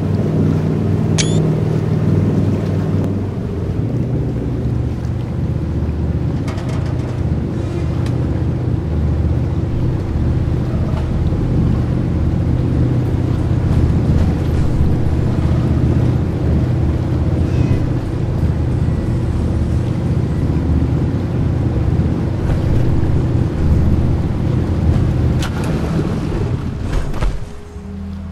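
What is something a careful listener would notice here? A boat engine rumbles steadily and then stops.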